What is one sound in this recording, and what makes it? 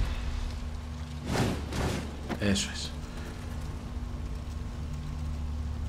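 A torch fire crackles softly.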